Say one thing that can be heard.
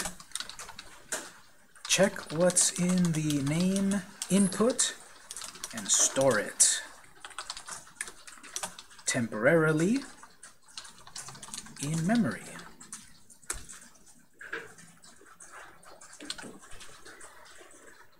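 Keys clack on a computer keyboard in short bursts.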